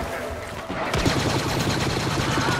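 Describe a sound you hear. Blaster bolts burst with crackling sparks.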